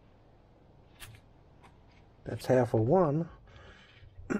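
A stencil sheet is peeled off and crinkles.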